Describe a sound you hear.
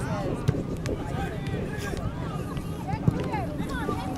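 A ball is kicked with a dull thump.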